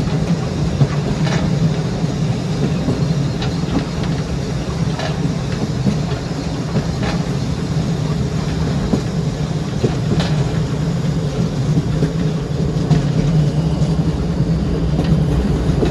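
A steam train rumbles steadily along the track.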